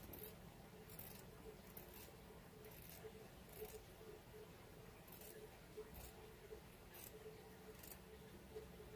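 Scissors snip thread with short, quiet clicks.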